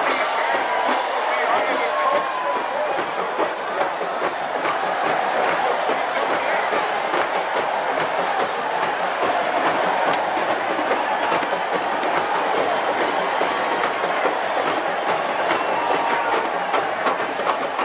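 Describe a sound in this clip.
Cymbals and drums of a marching band crash and beat.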